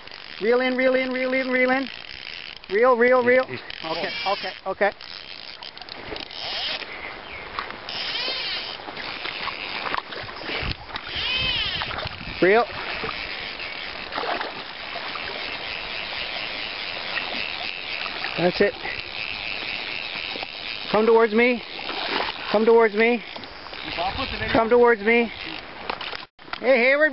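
A river flows steadily.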